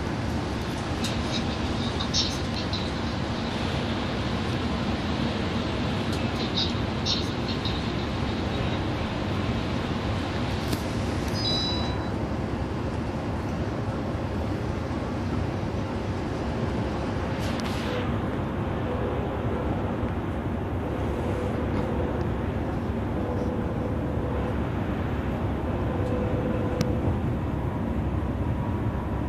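A bus engine drones steadily while driving on a highway.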